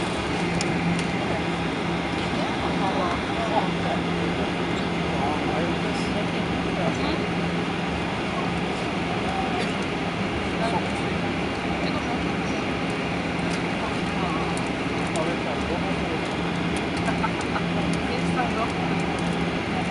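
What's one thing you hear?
An airliner's wheels rumble over the snowy taxiway.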